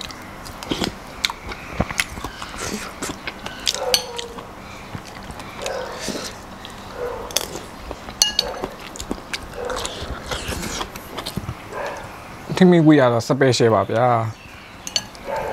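A metal spoon clinks on a china plate.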